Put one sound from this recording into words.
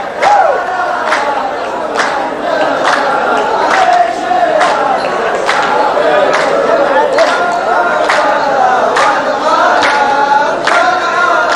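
A group of men claps in a steady rhythm.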